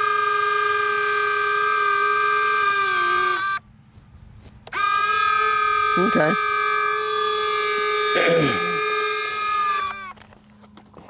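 The twin electric ducted fans of a radio-controlled jet model whine at a steady pitch.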